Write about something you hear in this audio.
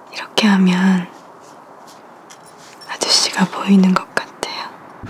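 A young woman speaks softly and closely.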